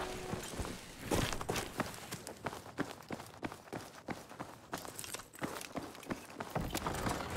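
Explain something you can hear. Footsteps tread steadily across a hard floor indoors.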